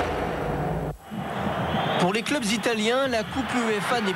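A stadium crowd roars and cheers.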